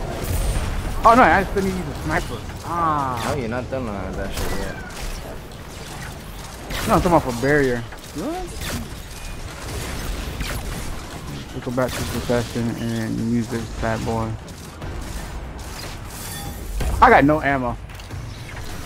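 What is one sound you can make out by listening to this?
Energy blasts whoosh and hum.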